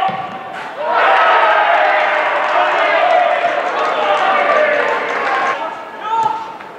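A crowd cheers loudly in a stadium.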